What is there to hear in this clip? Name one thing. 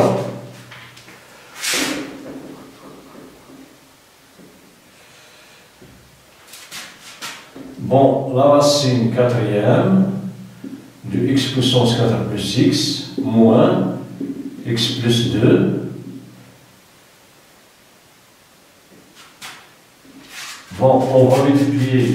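A man speaks calmly, close by, as if explaining.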